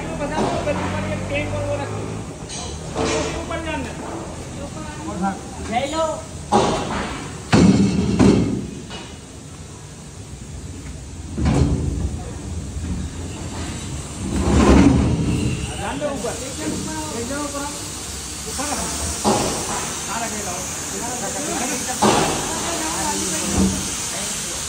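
Men talk with each other nearby.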